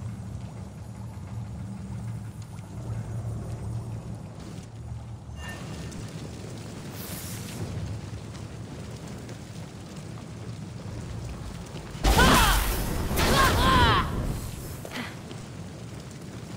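A fire crackles steadily.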